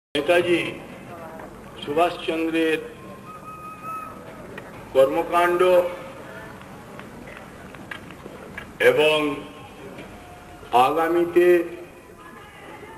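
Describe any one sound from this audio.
An elderly man shouts speech in loud bursts through a loudspeaker outdoors.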